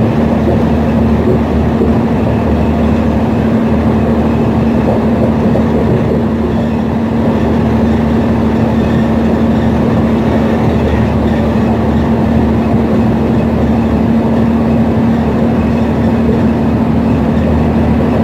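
Tyres roar on the highway.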